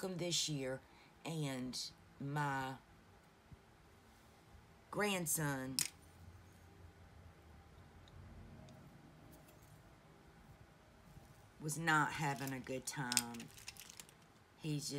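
A woman talks calmly and close by, in short phrases with pauses.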